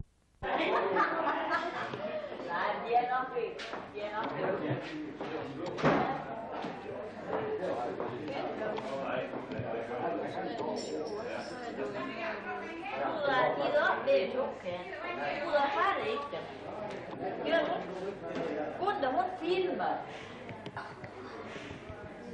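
Several adults talk and chatter close by.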